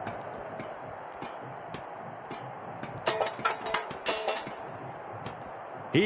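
Feet clang on a metal ladder as someone climbs.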